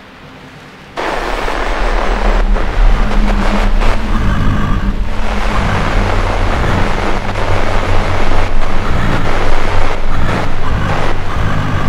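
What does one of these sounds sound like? Loud static hisses and crackles.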